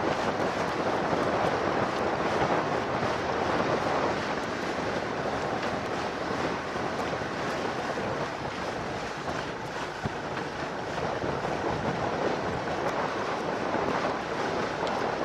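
Wind blows steadily outdoors, buffeting loudly.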